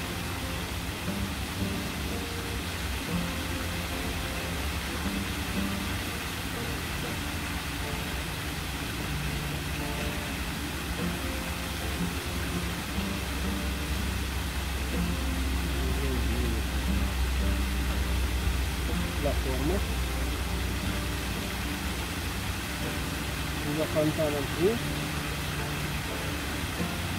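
A fountain splashes steadily in the distance.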